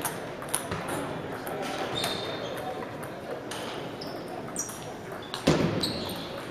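A table tennis ball is hit back and forth by paddles.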